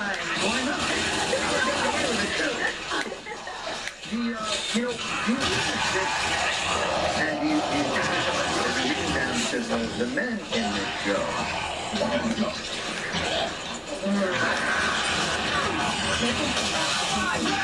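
Gunfire from a video game rattles through a television speaker.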